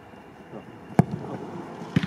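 A football is kicked with a hard thud.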